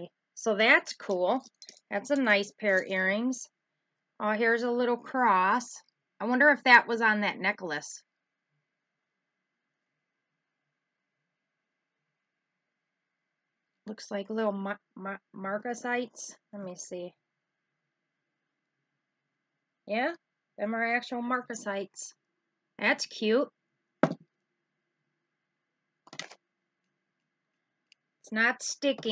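A middle-aged woman talks calmly close to a microphone, in bursts with pauses.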